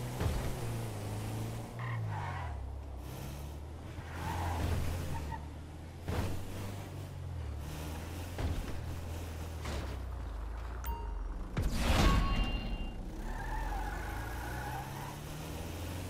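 Tyres roll over pavement.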